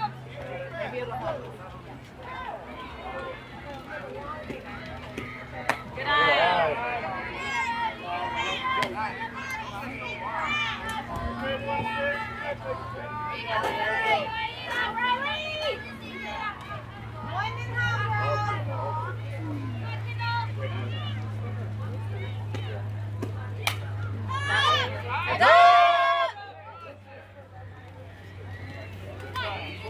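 Young girls shout and cheer from across an open field.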